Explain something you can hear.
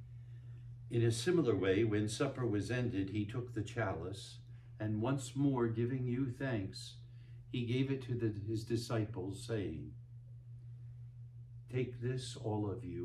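An elderly man speaks slowly and solemnly through a microphone.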